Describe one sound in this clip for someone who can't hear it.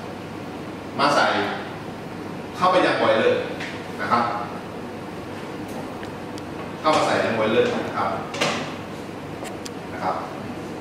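A man speaks calmly nearby in short phrases.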